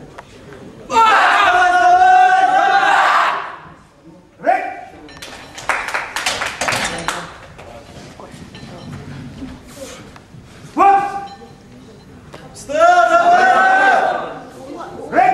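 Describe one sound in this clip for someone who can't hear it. Several men shout loudly and urgently in an echoing hall.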